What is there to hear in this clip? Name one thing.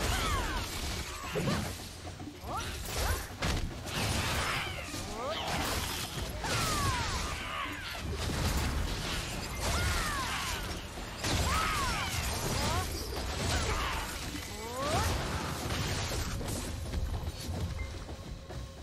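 Magic blasts burst and whoosh loudly.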